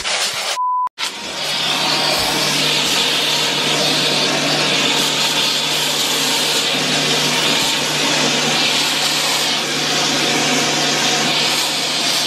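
A vacuum cleaner runs with a steady whining hum.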